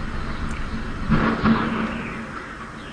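A wind turbine breaks apart with a loud crash.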